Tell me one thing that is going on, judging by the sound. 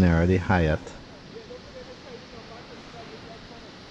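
A car drives slowly past on a quiet street.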